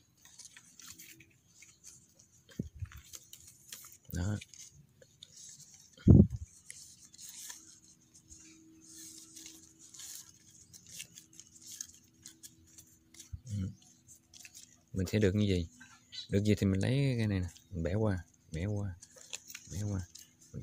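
Stiff palm leaves rustle and scrape softly as hands weave them.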